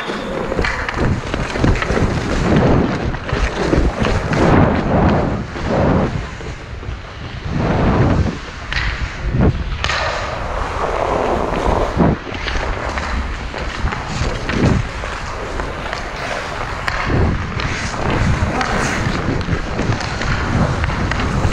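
A hockey stick taps and drags on the ice.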